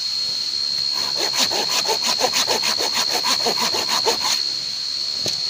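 A knife scrapes and shaves quickly along a wooden stick.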